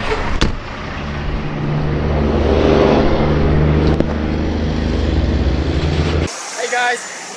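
A truck roars past close by.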